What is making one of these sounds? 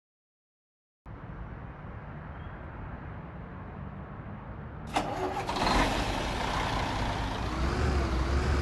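A bus engine idles with a low rumble and then revs up.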